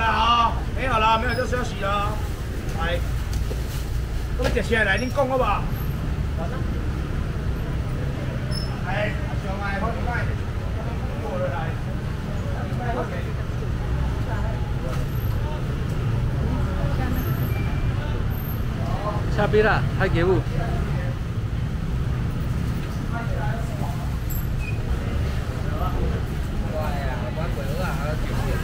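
Young men talk loudly nearby.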